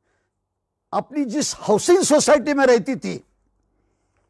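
A middle-aged man speaks with animation close to a clip-on microphone.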